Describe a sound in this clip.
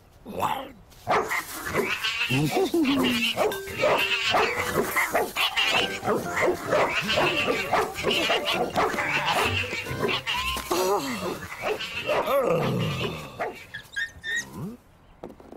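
A man mumbles and babbles with animation, close by.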